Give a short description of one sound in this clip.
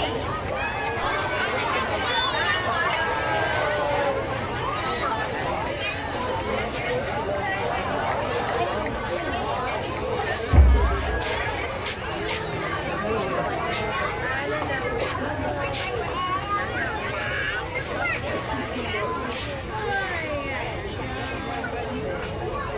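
A large crowd of men and women chatters and calls out loudly outdoors.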